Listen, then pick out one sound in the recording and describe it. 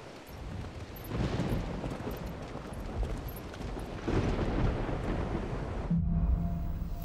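Wind rushes steadily outdoors.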